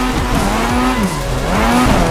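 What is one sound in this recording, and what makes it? Tyres screech as a car slides sideways.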